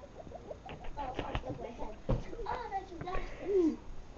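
A young girl's feet thump on the floor.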